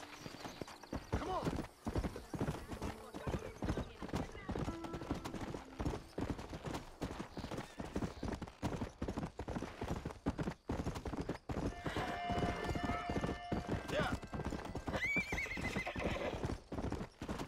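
A horse's hooves thud quickly as it gallops over dirt.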